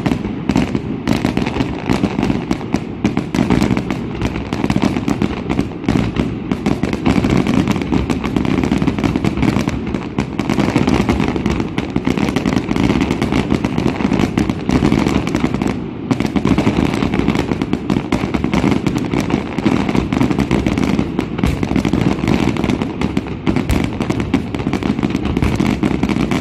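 Fireworks boom and crackle in rapid bursts outdoors.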